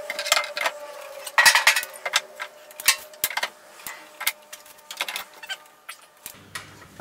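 Wooden tool handles knock against a wall rack.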